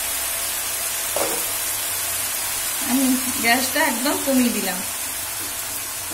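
Thick sauce bubbles and sizzles gently in a pan.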